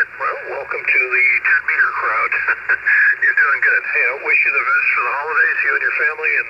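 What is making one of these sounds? A man speaks through a small radio loudspeaker, sounding thin and band-limited.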